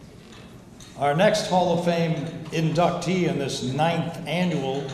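An older man speaks with emotion into a microphone in an echoing hall.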